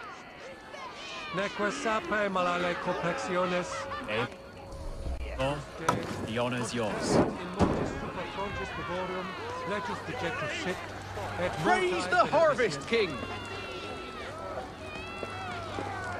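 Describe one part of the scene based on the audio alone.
A crowd of men and women chant and shout outdoors.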